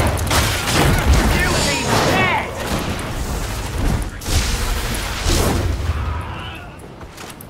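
Flames roar loudly and then die down.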